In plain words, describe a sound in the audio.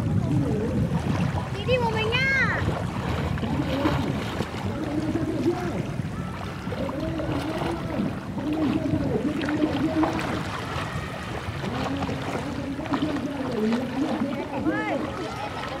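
Water splashes gently around a swimmer close by.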